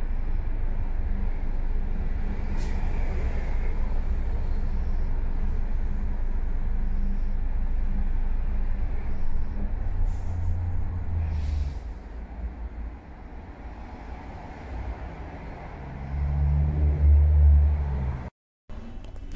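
Heavy traffic rumbles and idles along a busy road outdoors.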